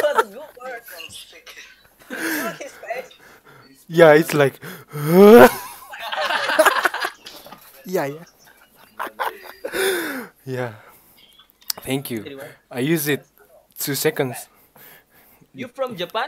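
A young man laughs and talks into a close microphone.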